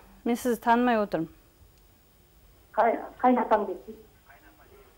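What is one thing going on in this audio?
A woman speaks through a microphone in short, emotional phrases.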